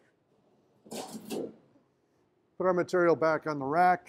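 A metal sheet rattles as a man lifts it.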